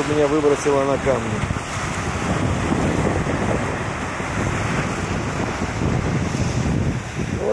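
Waves crash and splash against rocks.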